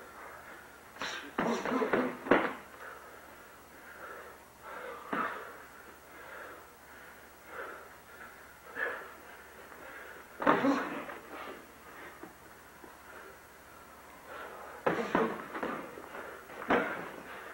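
Boxing gloves thud against each other and against bodies in sharp bursts.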